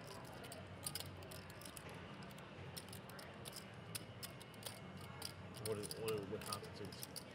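Poker chips click together as a player handles them.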